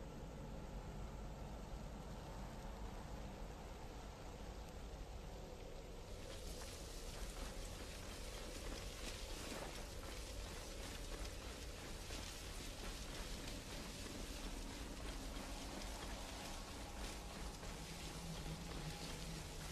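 Tall grain stalks rustle and swish as a person pushes through them.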